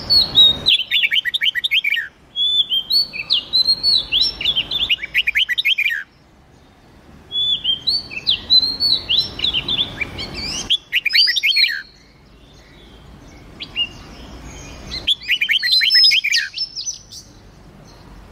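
Small songbirds sing loud, quick bursts of bright chirps and trills, with short pauses between them.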